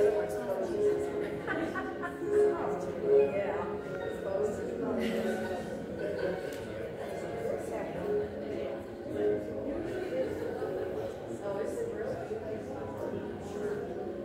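Men and women chat quietly in a large room.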